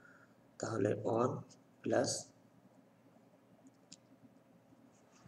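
A felt-tip marker scratches softly across paper.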